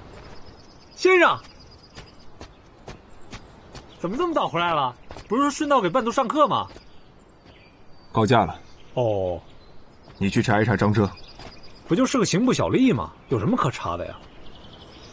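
A young man speaks calmly nearby.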